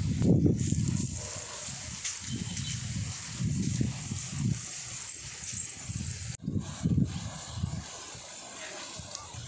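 Wind gusts outdoors and buffets the microphone.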